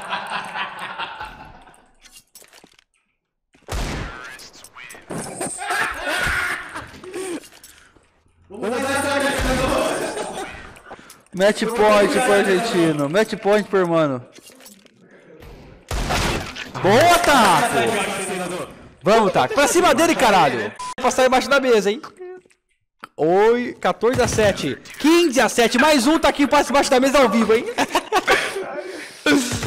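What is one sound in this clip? A young man talks excitedly and shouts into a headset microphone.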